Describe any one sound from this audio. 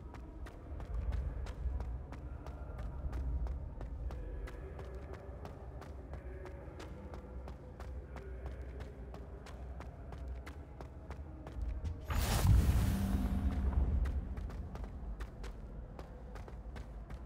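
Quick footsteps tap on stone stairs.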